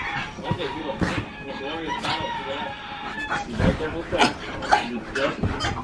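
A pug sniffs and snuffles close by.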